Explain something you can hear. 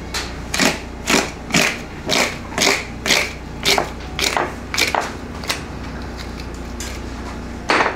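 Raw meat tears wetly as it is pulled apart.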